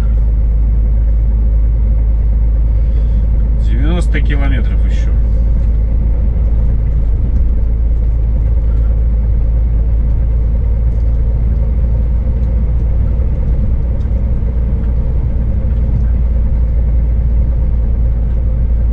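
A vehicle drives steadily along a road with a low, constant rumble.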